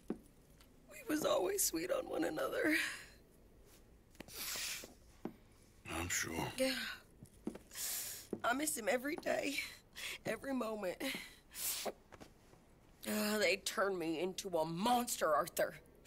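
A young woman speaks in a shaky, tearful voice close by.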